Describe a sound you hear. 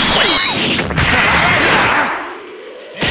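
An energy blast whooshes loudly.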